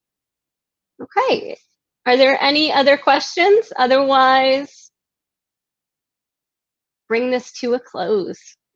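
A woman speaks calmly and closely over an online call.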